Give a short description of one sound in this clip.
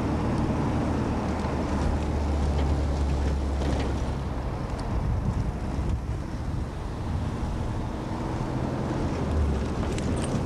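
A vehicle rumbles along a road, heard from inside.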